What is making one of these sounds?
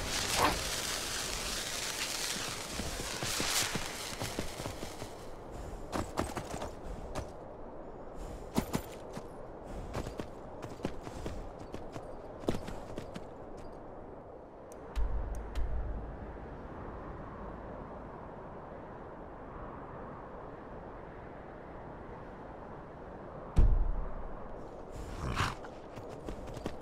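A horse gallops, its hooves thudding on snow.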